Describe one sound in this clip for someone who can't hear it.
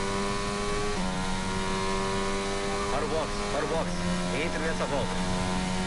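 A racing car engine whines steadily at high revs.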